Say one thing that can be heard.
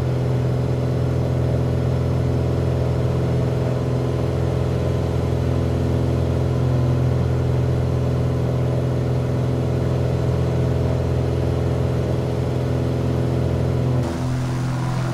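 A propeller engine drones steadily inside a small plane's cockpit.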